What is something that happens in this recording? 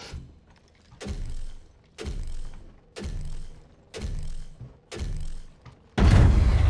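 Footsteps thud rhythmically.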